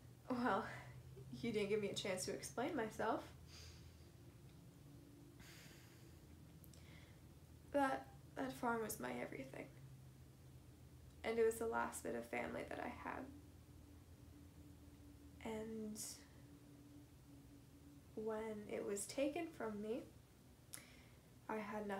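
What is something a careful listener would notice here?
A young woman speaks calmly and clearly, close by, in bursts with pauses.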